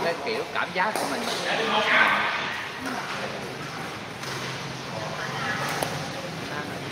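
Men talk and call out from across an echoing hall.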